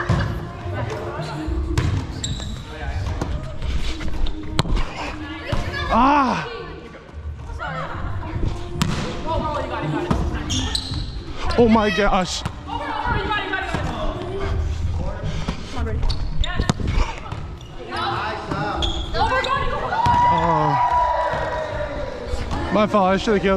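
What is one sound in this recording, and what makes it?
Hands smack a volleyball sharply again and again.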